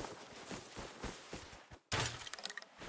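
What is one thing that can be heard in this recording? Footsteps thud on dry grass.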